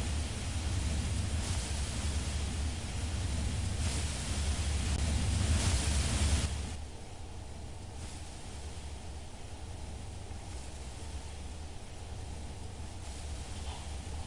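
Water washes steadily against a large ship's hull.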